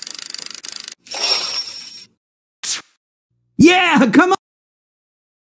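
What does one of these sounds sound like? A slot machine plays a short electronic win jingle.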